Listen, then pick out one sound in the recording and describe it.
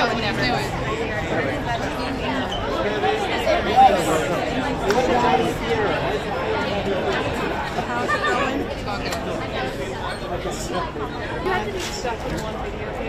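A crowd chatters and calls out nearby.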